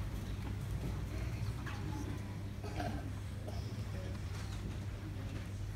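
An elderly woman speaks into a microphone, heard through loudspeakers in an echoing hall.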